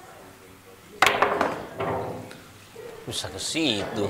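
Billiard balls clack together and roll across the table.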